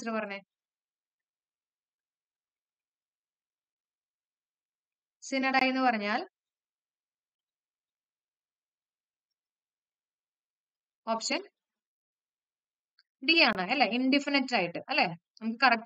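A young woman speaks calmly and clearly into a close microphone, with long pauses.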